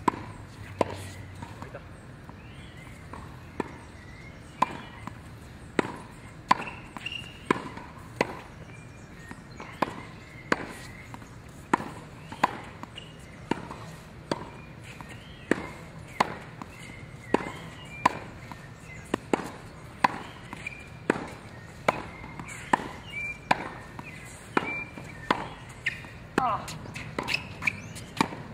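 A tennis racket strikes a ball in a rally outdoors.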